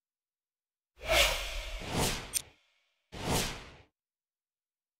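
Whooshing transition sounds sweep past.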